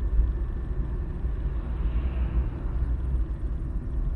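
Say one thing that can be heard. A truck rushes past in the other direction.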